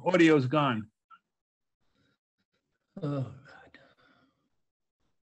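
An elderly man speaks calmly into a microphone on an online call.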